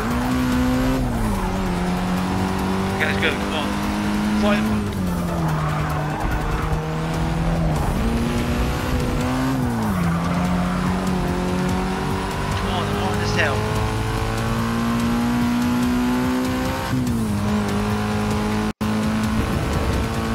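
A car engine drones loudly, its pitch dropping and climbing as it shifts gears.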